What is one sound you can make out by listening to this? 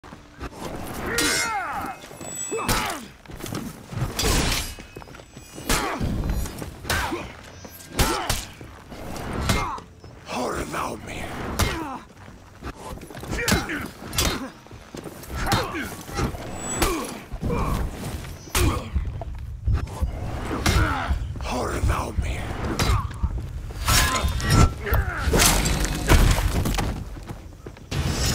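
Metal swords clash and ring against shields in quick, sharp strikes.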